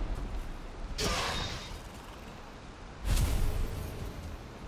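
A burst of fire crackles and pops.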